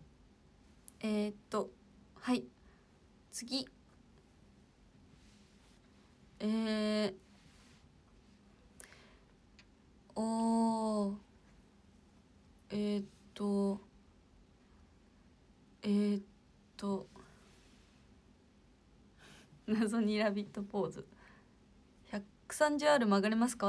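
A young woman talks close to a microphone with animation, in short bursts.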